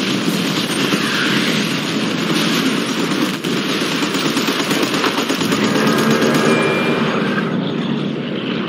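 A heavy machine gun fires in rapid, continuous bursts.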